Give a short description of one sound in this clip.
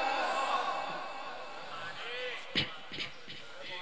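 A man chants in a long, melodic voice through a microphone in an echoing hall.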